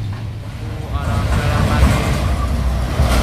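A large truck engine roars loudly as it approaches.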